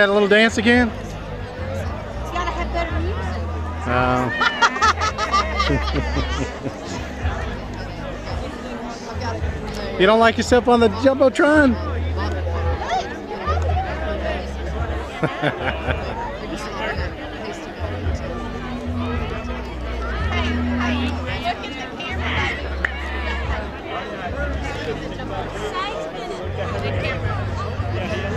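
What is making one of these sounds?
Women talk and laugh with animation close by, outdoors.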